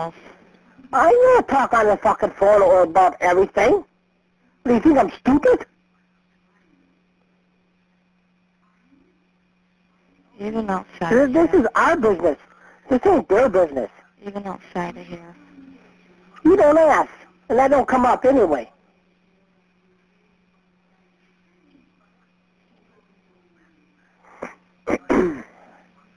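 A woman talks over a phone line.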